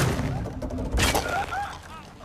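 A gun fires with a loud bang.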